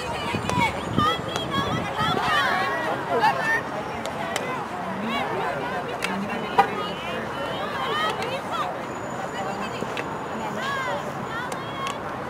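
Field hockey sticks clack against a ball.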